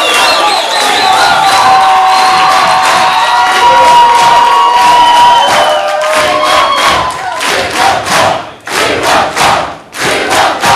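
A large crowd cheers and whistles loudly.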